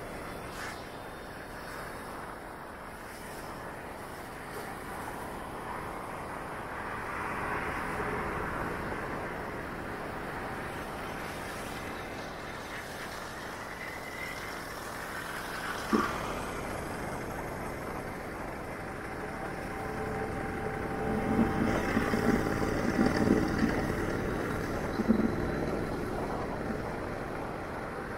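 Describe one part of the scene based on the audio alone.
Wind and road noise rush past steadily.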